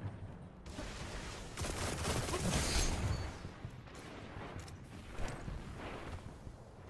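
Gunfire and blasts crackle in a fast-paced shootout.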